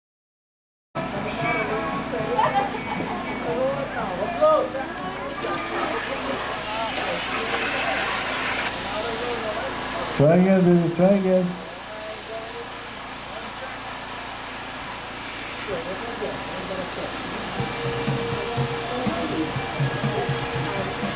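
Adults chatter and call out nearby, outdoors.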